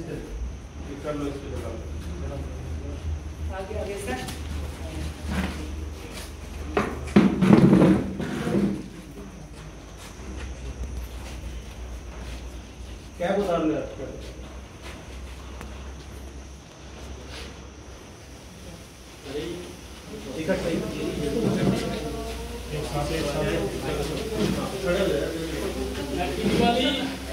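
A crowd of men talk and call out nearby.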